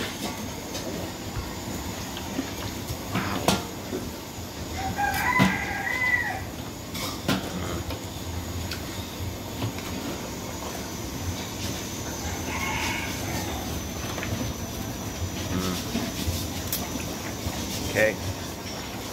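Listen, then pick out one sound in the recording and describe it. A metal strainer scrapes and clinks against a cooking pot.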